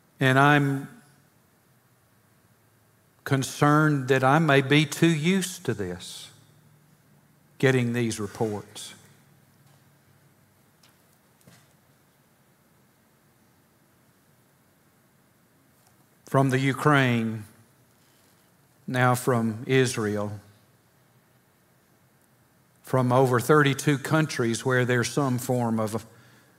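An older man speaks slowly and deliberately through a microphone, with long pauses.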